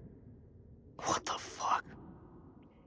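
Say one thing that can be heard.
A young man shouts in shock.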